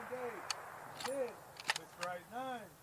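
Metal clicks sharply as a rifle bolt is worked.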